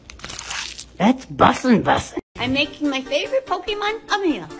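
An elderly woman speaks animatedly close to a microphone.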